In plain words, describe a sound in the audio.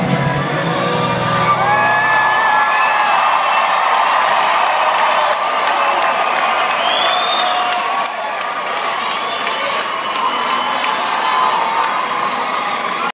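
An electric guitar plays loudly through speakers in a large echoing hall.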